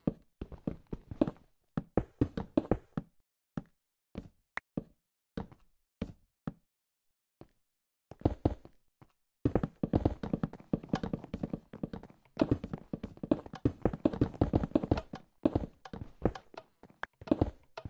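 Game blocks are placed and broken with quick, soft thuds.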